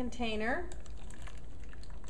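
Liquid pours into a plastic tub.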